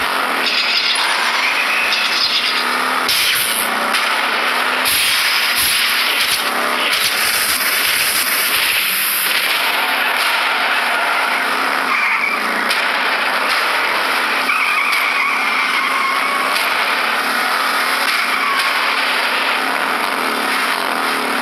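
Small race car engines whine and buzz steadily.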